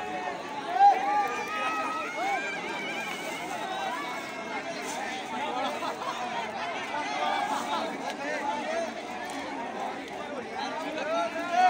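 A large bonfire crackles and roars.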